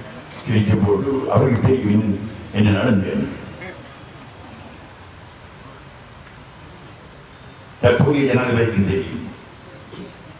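An elderly man speaks slowly into a microphone, heard through a loudspeaker, with long pauses.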